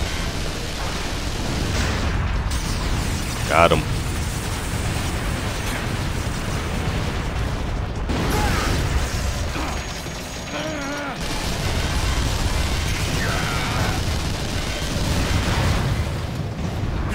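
Rapid gunfire rattles and blasts.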